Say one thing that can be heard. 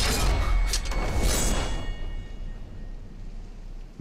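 A metal sword blade rings and slowly fades.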